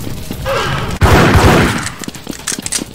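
Two pistols fire quick shots.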